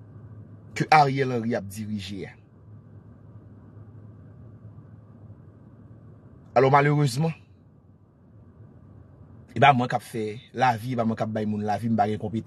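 A man speaks with animation close to a phone microphone, in short bursts with pauses.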